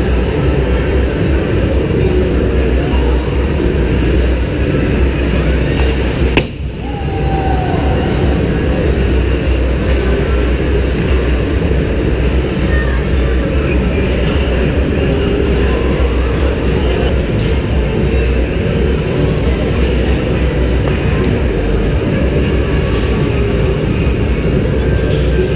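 A large indoor hall echoes.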